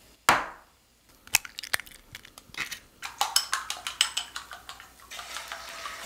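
A fork beats eggs in a glass bowl with quick clicks.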